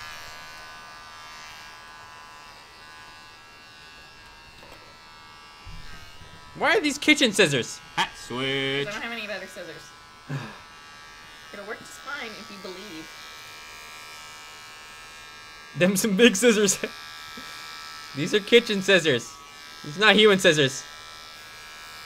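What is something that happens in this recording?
Electric hair clippers buzz steadily close by.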